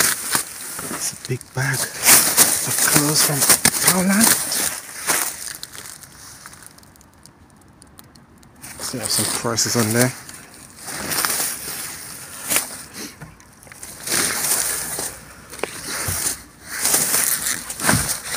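Plastic bags rustle and crinkle as they are pushed around.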